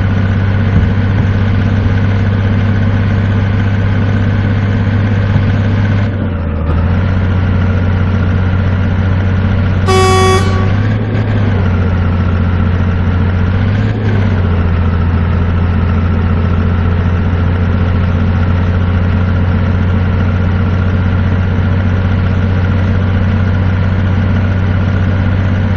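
A truck's diesel engine rumbles steadily from inside the cab.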